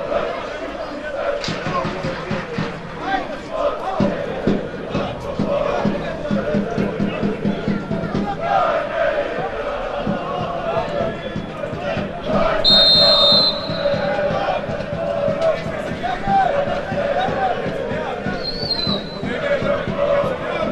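A crowd of spectators cheers and chatters throughout, outdoors.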